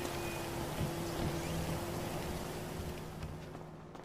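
A heavy door opens.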